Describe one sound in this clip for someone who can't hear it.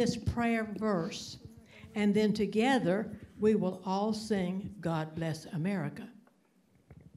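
A woman speaks into a microphone in a large room.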